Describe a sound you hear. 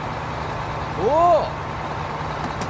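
A young man gasps in surprise.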